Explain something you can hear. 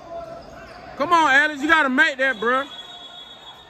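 A referee's whistle blows in sharp trills.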